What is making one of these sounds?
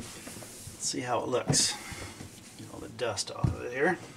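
A cloth rubs and squeaks against a smooth surface.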